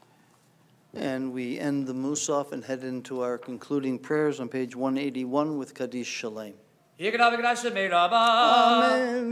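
A man chants in a singing voice through a microphone.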